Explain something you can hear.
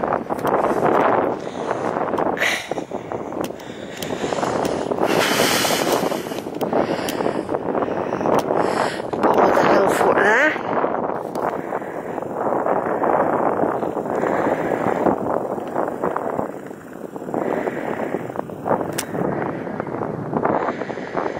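Wind blows hard across an open hilltop, rising and falling in gusts.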